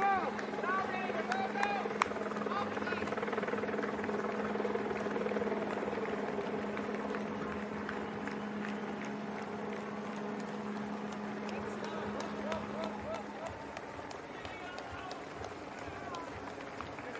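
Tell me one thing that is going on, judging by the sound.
Running shoes patter on the road as a group of runners passes.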